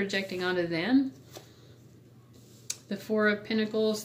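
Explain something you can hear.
A card is laid down with a soft tap.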